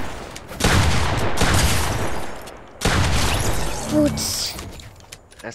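Gunfire blasts in rapid bursts.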